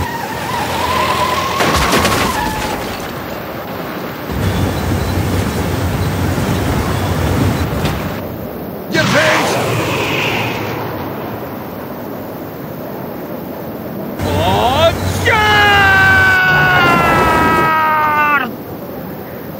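An old truck engine rumbles as the truck drives along.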